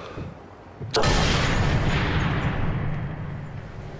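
A rifle fires a loud shot that booms and echoes away.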